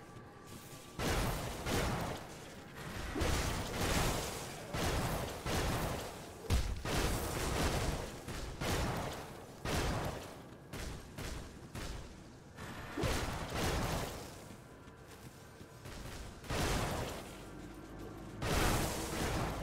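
Magic blasts and impacts burst again and again during a fight.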